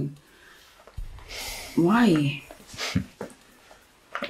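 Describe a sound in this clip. A young man answers calmly close by.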